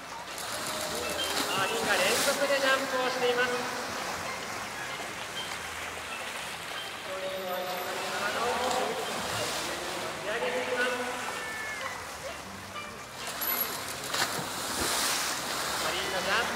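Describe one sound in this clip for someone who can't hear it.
A large orca leaps and crashes into water with a heavy splash.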